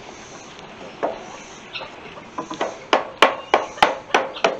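Wooden boards knock and clatter.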